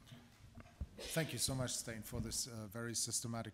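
Another man speaks into a microphone in a large hall.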